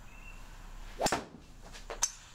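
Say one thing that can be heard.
A golf club strikes a ball with a sharp crack, echoing in a small room.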